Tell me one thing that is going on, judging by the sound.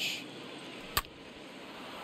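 A bat cracks sharply against a ball.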